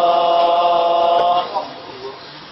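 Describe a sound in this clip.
A man chants in a long, held melodic voice through a microphone and then falls quiet.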